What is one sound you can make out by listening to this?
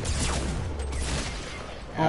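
A shotgun fires in a game.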